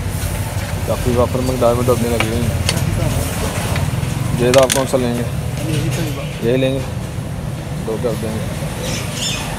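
A man speaks nearby in a casual tone.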